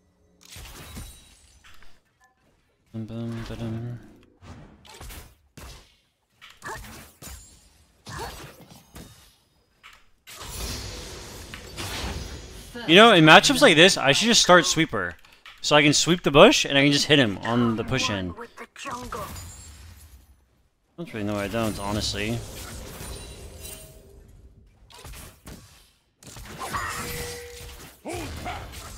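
Video game combat sound effects clash and whoosh.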